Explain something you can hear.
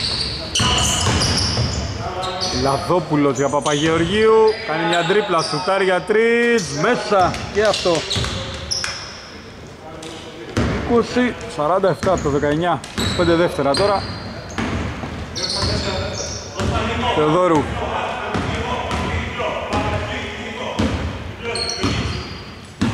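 A basketball bounces on the court floor.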